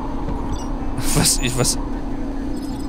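A man speaks briefly, close to a microphone.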